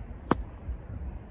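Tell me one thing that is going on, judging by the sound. A club strikes a golf ball with a sharp click.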